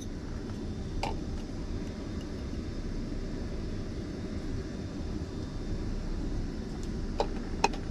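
A plastic bottle crinkles and clicks in a hand.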